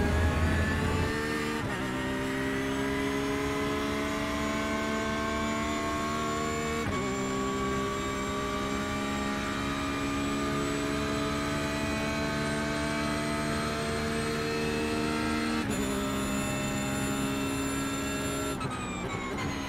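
A racing car engine roars at high revs, rising through each gear and dropping as it shifts.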